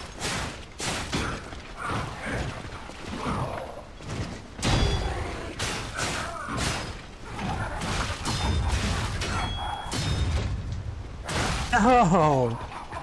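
Sword blows clang and thud in quick succession.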